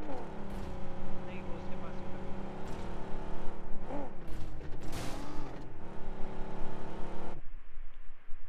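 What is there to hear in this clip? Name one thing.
A car engine hums steadily as the car drives over rough ground.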